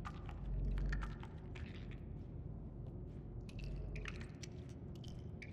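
Small footsteps creak on wooden floorboards.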